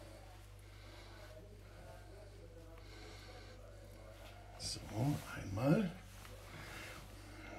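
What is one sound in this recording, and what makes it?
A knife taps lightly on a wooden board.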